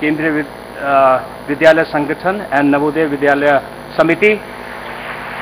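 An elderly man speaks formally into a microphone over a loudspeaker.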